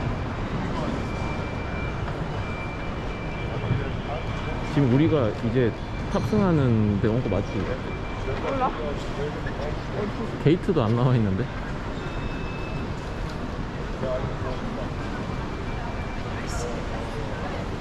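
Distant voices murmur faintly in a large echoing hall.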